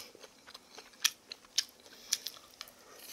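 A woman chews and slurps food close up.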